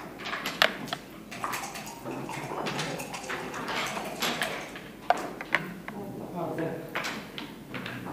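Backgammon checkers click and clack as they are moved on a wooden board.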